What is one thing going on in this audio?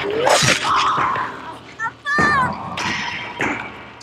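A man cries out in anguish.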